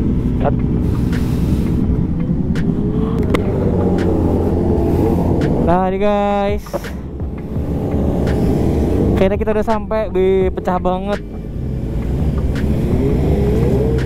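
Motorcycle engines idle with a steady low rumble close by.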